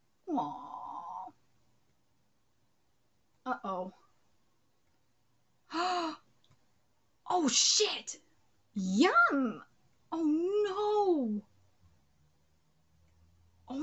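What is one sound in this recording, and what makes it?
A young woman speaks close to a microphone, with animation and pauses.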